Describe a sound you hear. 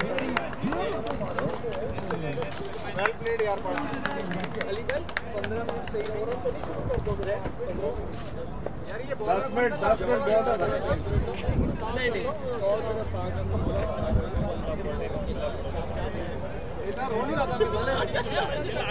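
Men talk and call out outdoors at a distance.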